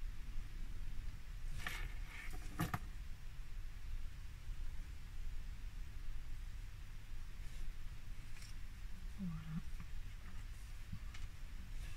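A marker pen scratches softly on card.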